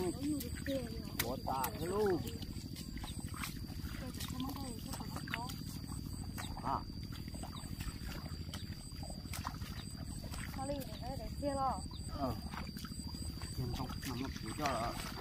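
Hands push rice seedlings into soft wet mud with quiet squelches.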